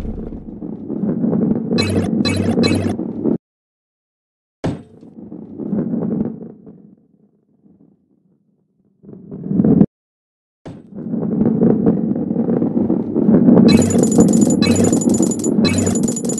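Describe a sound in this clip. A heavy ball rolls with a low, steady rumble.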